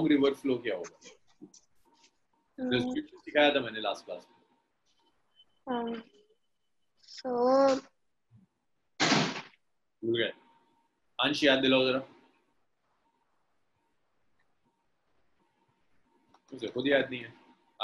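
A young man speaks calmly into a close microphone, explaining in short phrases with pauses.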